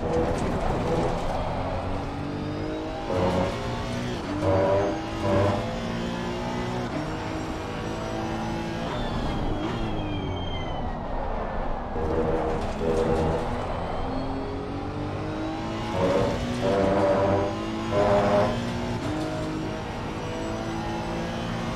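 A race car engine roars, rising and falling in pitch as the car shifts gears.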